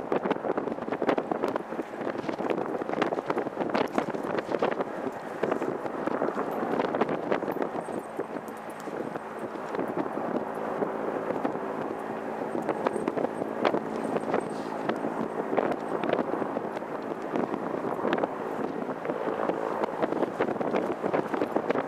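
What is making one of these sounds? A jet engine roars steadily as an airliner rolls slowly nearby.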